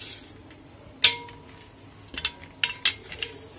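Mangoes clunk down onto a metal plate.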